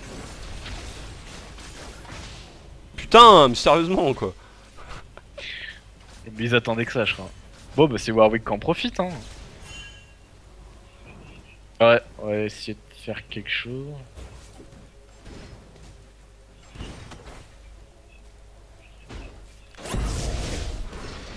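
Electric spell effects crackle and zap in quick bursts.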